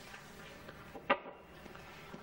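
A door clicks.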